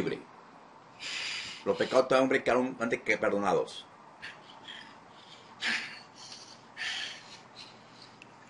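A man sniffles and breathes heavily over an online call.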